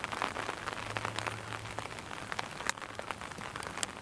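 A golf club chips a ball off the grass with a short, soft thud.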